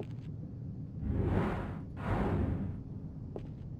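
Two quick whooshes sweep past as a figure swings around a pole.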